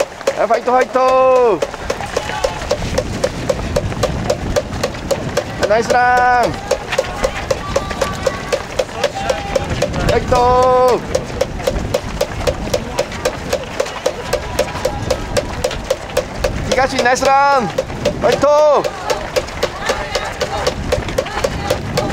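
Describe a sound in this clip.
Spectators clap their hands in a steady rhythm.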